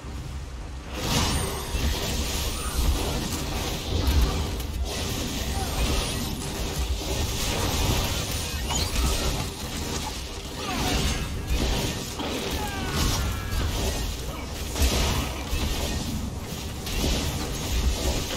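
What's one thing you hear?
Magic blasts and weapon strikes crash and crackle in a fast fight.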